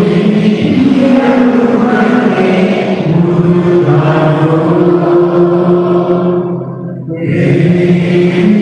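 A man chants in long, held notes through a loudspeaker in a large echoing hall.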